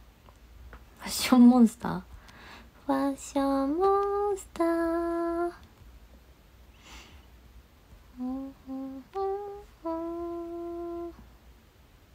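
A young woman talks close by in an animated, sing-song voice, stretching out her words.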